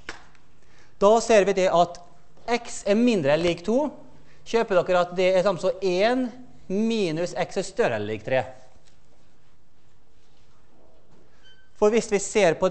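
A man lectures calmly in a large echoing hall.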